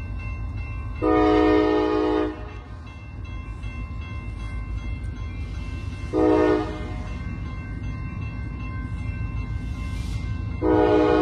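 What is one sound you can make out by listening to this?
A train horn blows loudly in long blasts from a distance.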